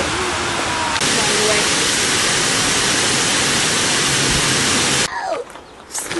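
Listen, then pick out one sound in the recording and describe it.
A stream rushes loudly over rocks.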